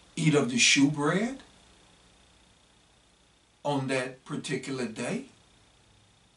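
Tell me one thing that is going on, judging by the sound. A man speaks calmly and closely into a microphone, pausing between phrases.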